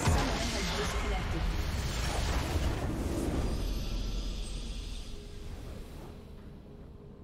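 A huge explosion booms and rumbles, then slowly fades.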